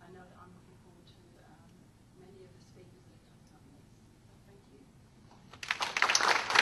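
A woman speaks calmly and faintly through a microphone.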